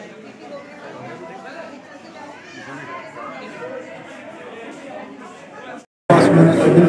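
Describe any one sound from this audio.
Several men talk over one another in a crowded room.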